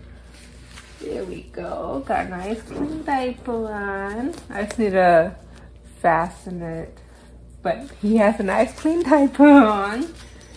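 A middle-aged woman speaks close by with animation, in a high, sing-song voice.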